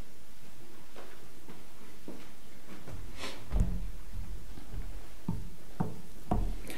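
Footsteps knock on a wooden floor in an echoing hall.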